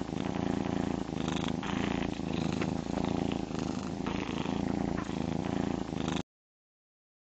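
A cartoon cat purrs steadily.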